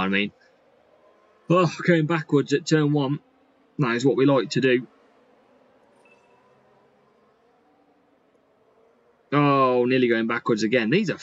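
A young man talks casually into a close microphone, in short bursts with pauses.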